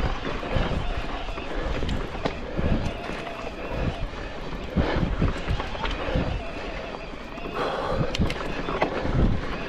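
Wind rushes past steadily outdoors.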